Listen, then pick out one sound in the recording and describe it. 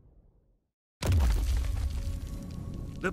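Earth and rubble crash and rumble as a huge bony hand bursts from the ground.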